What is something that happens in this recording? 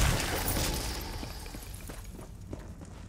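A magic spell crackles and bursts with a bright hiss.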